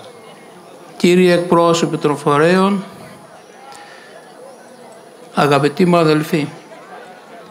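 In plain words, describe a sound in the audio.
An elderly man speaks slowly and solemnly through a microphone and loudspeakers outdoors.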